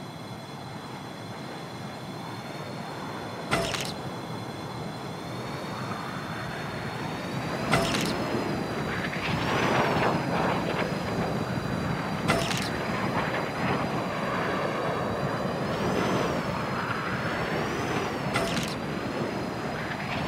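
Wind rushes loudly and steadily past a gliding flyer.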